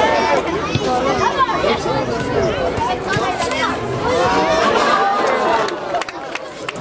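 Players shout and call to each other across an open outdoor field.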